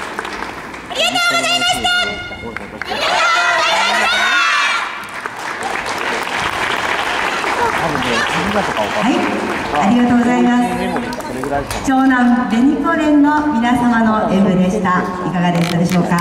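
A group of young women sing out loudly together in a large echoing hall.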